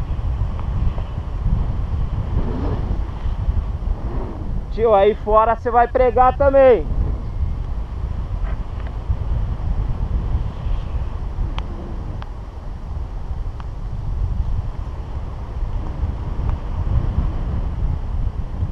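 Wind buffets the microphone during a paraglider flight.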